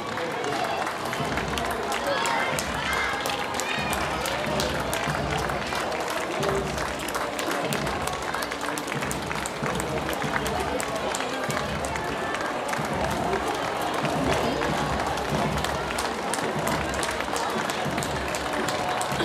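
A crowd of women and children chatters.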